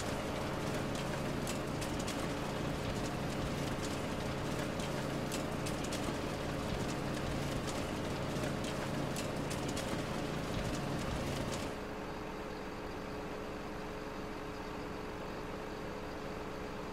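A machine's engine hums steadily.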